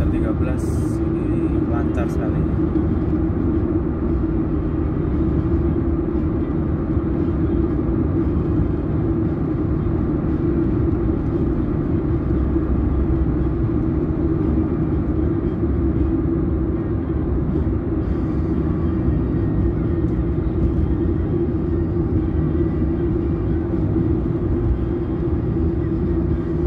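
A car's engine hums steadily as it drives along a highway.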